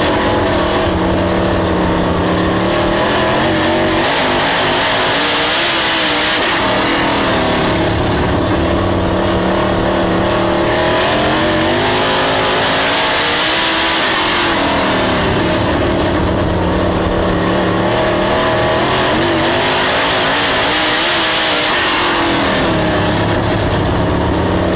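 A race car engine roars loudly up close, rising and falling in pitch as it revs through the turns.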